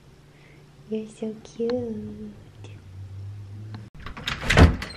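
A cat purrs while being stroked.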